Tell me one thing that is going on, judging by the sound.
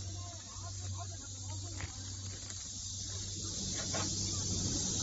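Plastic sheeting crinkles and rustles close by.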